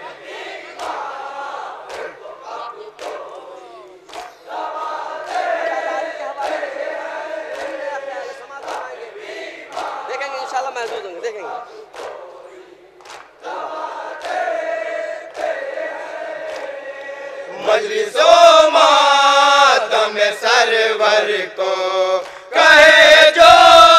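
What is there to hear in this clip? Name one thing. A young man recites with feeling through a loudspeaker.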